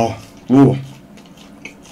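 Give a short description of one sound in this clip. A young man makes a short vocal sound close to a microphone.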